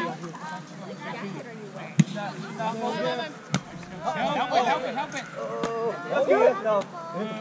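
Several young men and women call out and chat with animation outdoors.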